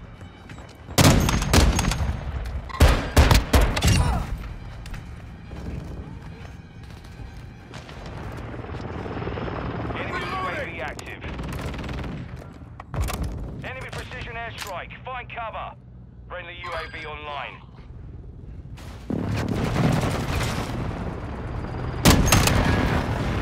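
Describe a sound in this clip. Loud gunshots crack in quick bursts.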